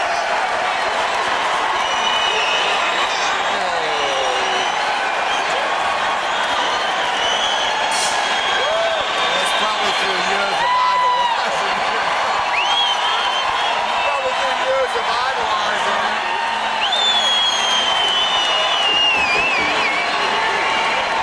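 A large crowd cheers loudly in a big echoing arena.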